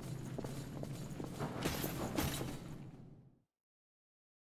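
Footsteps scrape and thud on a stone floor.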